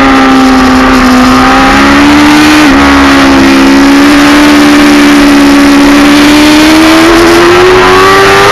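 A motorcycle engine roars at high revs, its pitch climbing slowly.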